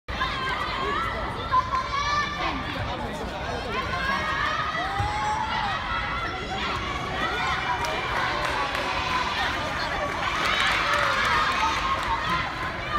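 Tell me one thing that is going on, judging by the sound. A crowd of young girls shouts and cheers outdoors.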